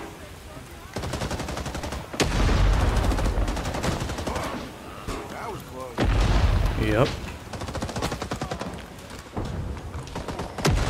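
A rifle fires in rapid bursts.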